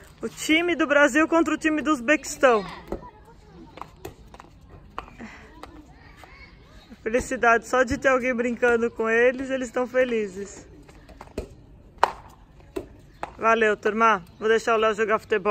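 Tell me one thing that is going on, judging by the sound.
A ball thuds on paving stones.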